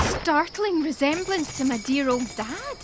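Coins jingle as they scatter.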